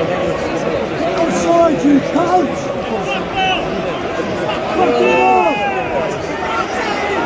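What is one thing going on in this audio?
A man close by shouts loudly.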